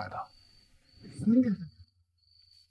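A young woman exclaims with surprise.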